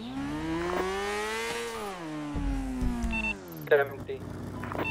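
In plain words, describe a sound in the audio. A motorcycle engine revs up, then winds down.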